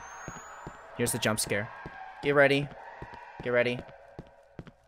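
A young man talks excitedly into a microphone.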